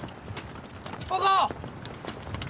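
A man shouts a short report.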